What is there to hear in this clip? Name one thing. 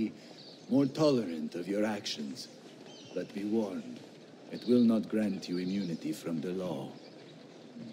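A man speaks calmly and firmly, close by.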